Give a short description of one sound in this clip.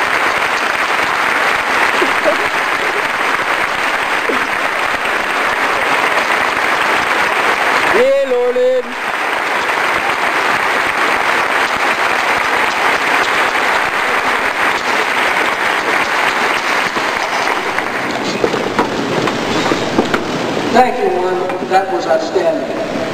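A large crowd chatters and cheers outdoors.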